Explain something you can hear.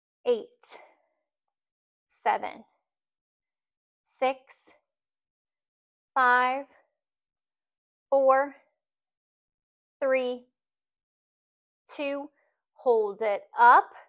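A young woman speaks calmly in short phrases, close to a microphone.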